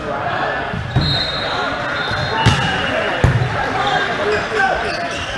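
A volleyball thuds as a player hits it.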